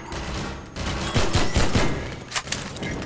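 A pistol fires rapid shots that echo.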